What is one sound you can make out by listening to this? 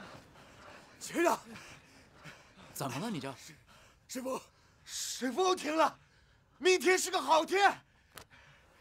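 A man shouts loudly and with emotion close by.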